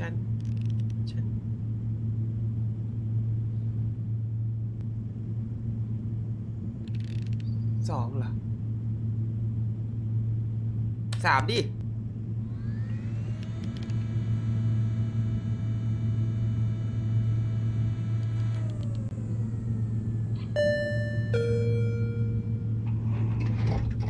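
A low electric hum drones steadily.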